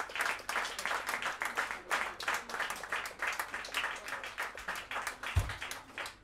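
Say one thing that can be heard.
Cymbals tap out a quick rhythm.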